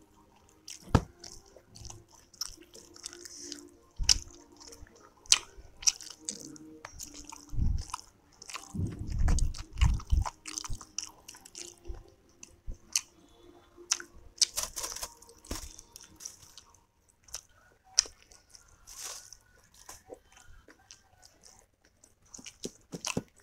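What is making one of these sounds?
Soft dumplings squish as fingers pick them up and dip them in sauce.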